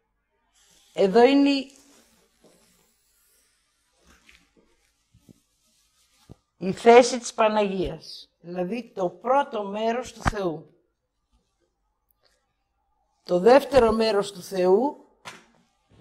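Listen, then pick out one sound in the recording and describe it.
A woman speaks with animation through a microphone, in bursts with pauses.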